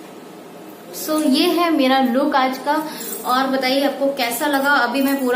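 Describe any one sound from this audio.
A young woman speaks close to a microphone, with animation.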